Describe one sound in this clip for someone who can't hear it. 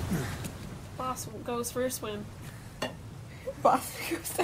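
A young woman grunts and gasps with effort nearby.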